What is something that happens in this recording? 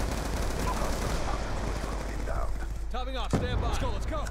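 A rifle fires a few sharp shots.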